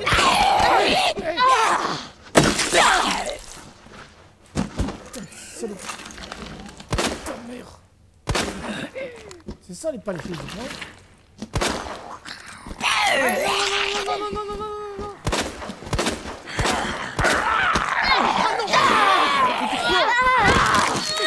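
Zombies growl and snarl up close.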